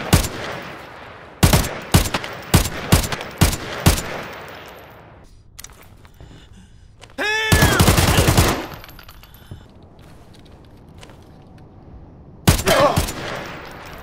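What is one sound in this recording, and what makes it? Gunshots crack loudly and echo, one after another.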